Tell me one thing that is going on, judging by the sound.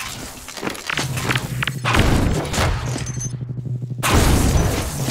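An energy beam weapon hums and crackles steadily.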